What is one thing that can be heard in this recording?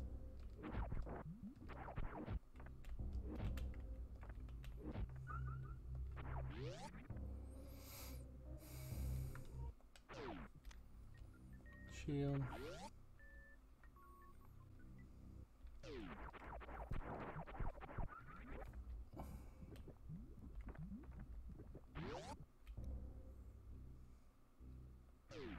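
Video game blaster shots zap repeatedly.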